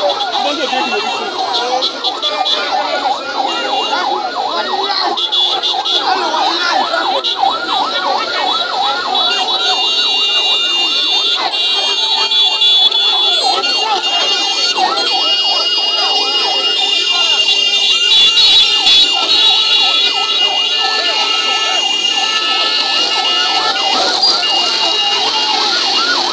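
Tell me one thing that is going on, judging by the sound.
A large crowd chants and shouts loudly outdoors.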